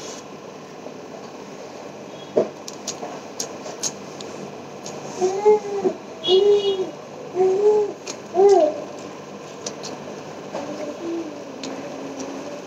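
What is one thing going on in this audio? Food squelches as a hand mixes it.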